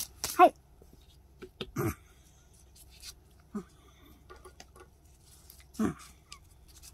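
Lace peels softly off a rubbery mat.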